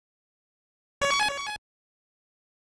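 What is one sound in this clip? A bright electronic chime rings once as a game saves.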